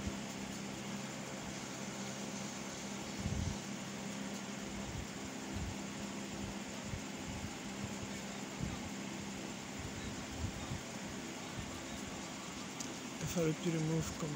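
A finger taps softly on a phone's touchscreen.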